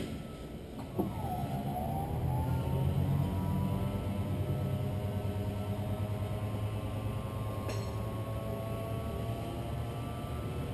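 An electric motor whirs steadily as a convertible top rises.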